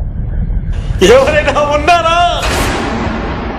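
A man cries out loudly in anguish.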